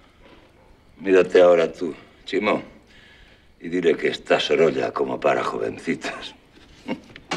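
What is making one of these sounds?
An elderly man speaks close by, with pauses.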